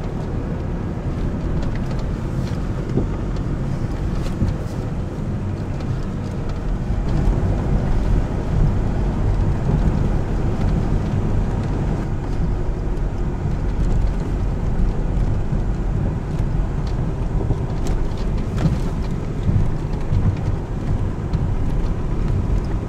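Stones knock against the underside of a vehicle.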